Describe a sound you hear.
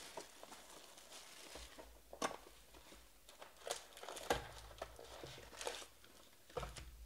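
Plastic wrapping crinkles as hands tear open a card pack.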